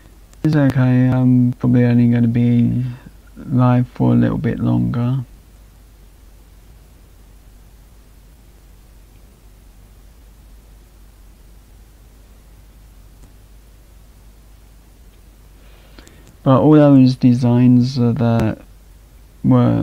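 A young man speaks calmly into a microphone, as if on an online call.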